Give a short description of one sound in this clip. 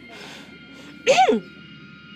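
A young woman gasps in surprise close by.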